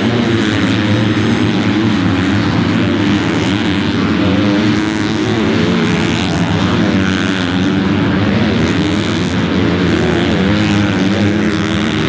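Motorcycle engines roar and rev loudly nearby.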